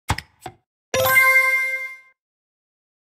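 A bright chime rings out briefly.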